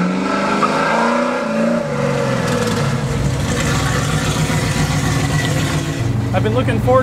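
A car engine rumbles deeply as the car approaches.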